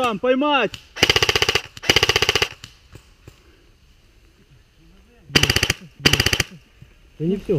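A rifle fires short rapid bursts close by, outdoors.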